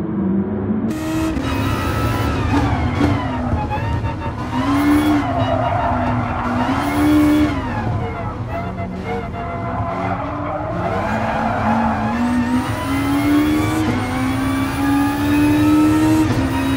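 A race car engine whines loudly up close, climbing and dropping as it shifts gears.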